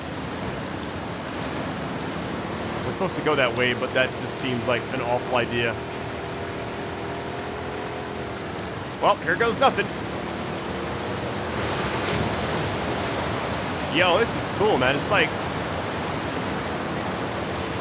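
A small boat's outboard motor hums steadily.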